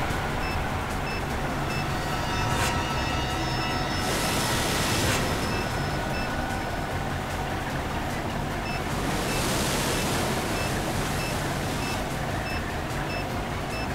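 An electronic timer beeps at a steady, quick pace.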